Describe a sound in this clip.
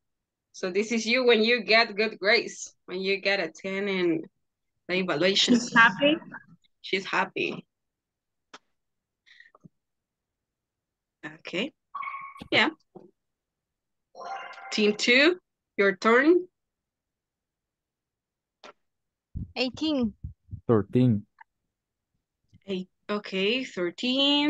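A woman speaks with animation through a microphone, in short bursts with pauses.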